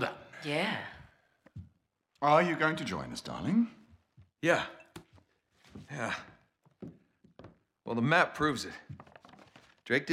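A young man answers briefly and tiredly.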